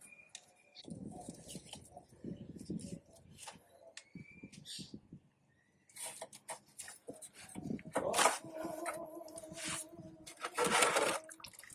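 Hands rub and work a rubber hose on an engine, making soft scraping and clicking sounds.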